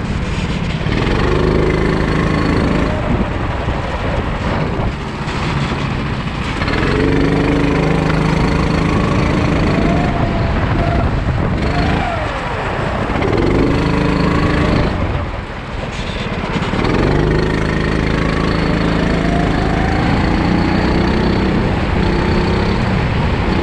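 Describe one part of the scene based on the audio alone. A kart engine buzzes close by, rising and falling in pitch as it speeds up and slows.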